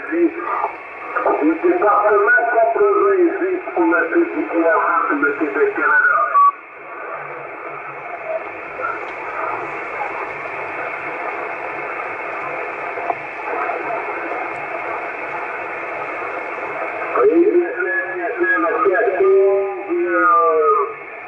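A man's voice talks through a crackly radio loudspeaker.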